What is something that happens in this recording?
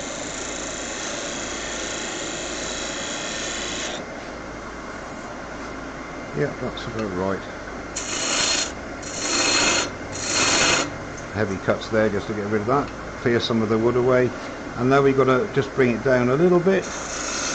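A wood lathe runs with a steady hum.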